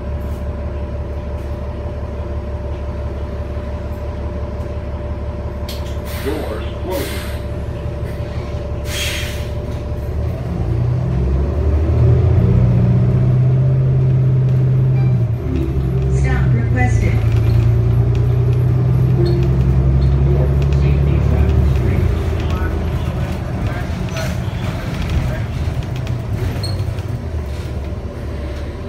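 A bus rattles and creaks over the road.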